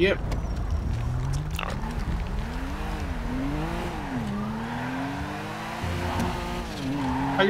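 A car engine revs up and down as the car pulls away.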